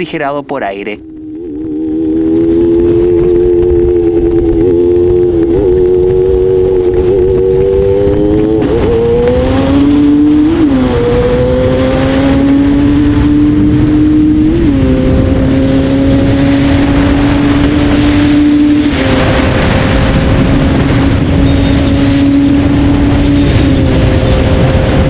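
A motorcycle engine hums steadily, rising in pitch with each gear change.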